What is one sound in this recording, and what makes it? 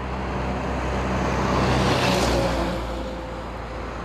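A car drives away on a wet road with a hissing of tyres.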